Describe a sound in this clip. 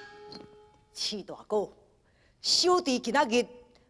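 A man sings in a high, wavering voice.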